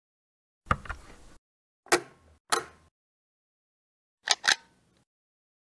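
Electronic switches click and beep.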